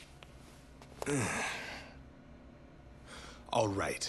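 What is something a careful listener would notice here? A man sobs and groans in distress.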